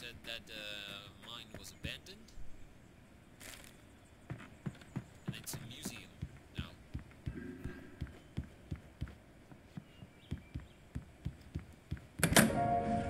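Footsteps thud on wooden boards and stairs.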